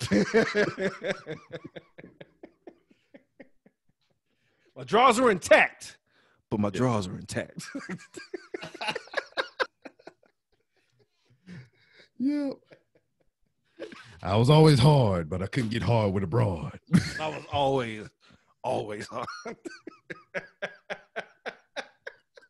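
A second man laughs heartily through a microphone over an online call.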